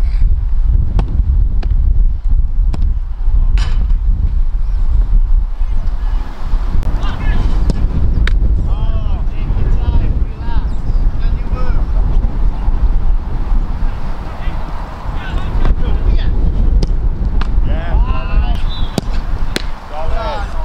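A football is kicked with sharp thumps.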